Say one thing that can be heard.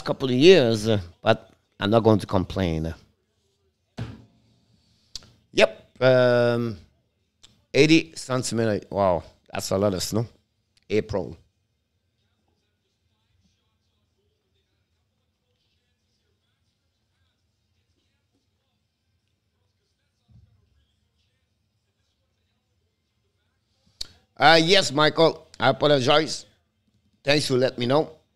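An older man speaks with animation, close to a microphone.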